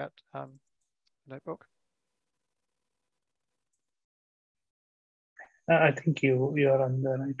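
A man speaks calmly through an online call.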